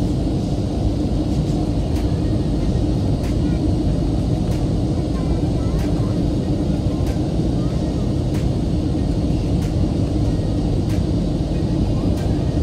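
A jet airliner's engines roar steadily inside the cabin.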